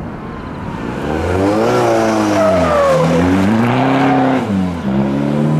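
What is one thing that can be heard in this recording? Tyres screech on the road surface.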